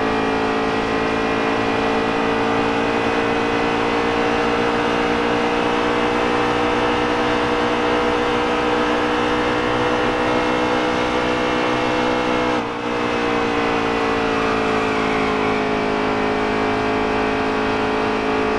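A racing truck engine roars steadily at high speed.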